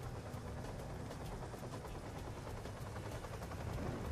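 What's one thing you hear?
A helicopter's rotor thuds overhead.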